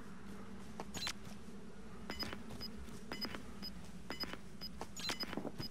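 An electronic device gives short repeated beeps.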